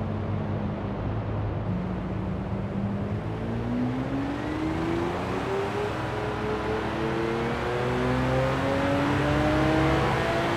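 Tyres roll with a steady rushing noise on the road.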